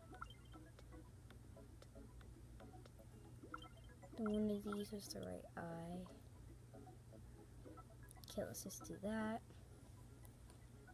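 Fingers tap softly on a phone's touchscreen.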